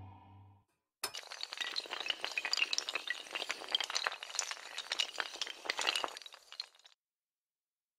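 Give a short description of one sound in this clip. Many hard tiles clatter as they topple over one another like dominoes.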